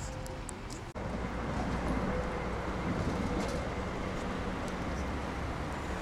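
A tram rumbles along the tracks.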